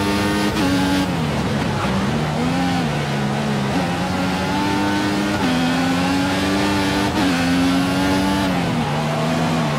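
A racing car engine whines loudly, its pitch dropping as gears shift down and rising again as it speeds up.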